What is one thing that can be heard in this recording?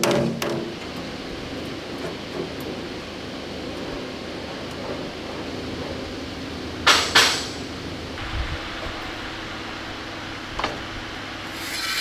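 Metal creaks as a bent sheet is levered back and forth.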